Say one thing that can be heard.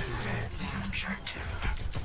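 A blast explodes with a loud boom.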